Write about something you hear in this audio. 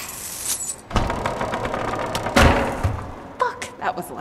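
Wooden planks crash and clatter as they fall.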